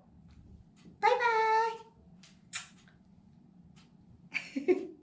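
A young woman speaks cheerfully and close by.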